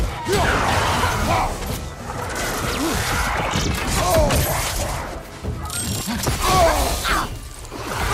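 Weapons strike and clash.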